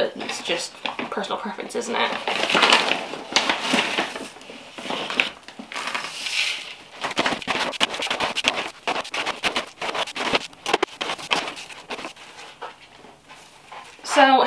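Soil and a plastic bag rustle and crunch as hands work them.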